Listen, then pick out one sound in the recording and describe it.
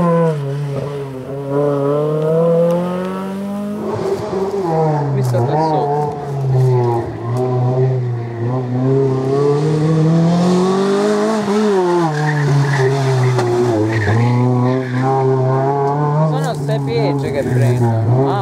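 A rally car engine revs hard, rising and falling in pitch as it accelerates and brakes.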